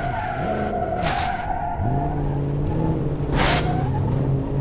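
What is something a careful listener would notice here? A car crashes with loud bangs and a crunch of metal.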